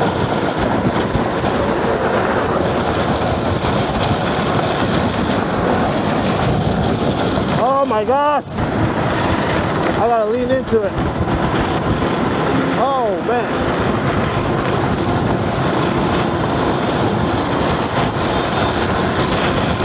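Wind rushes loudly over the microphone while riding outdoors.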